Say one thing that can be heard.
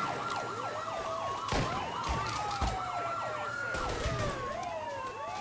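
Police sirens wail and warble close by.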